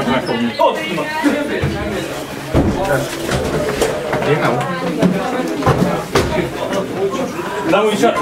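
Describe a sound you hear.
Several men talk over one another close by.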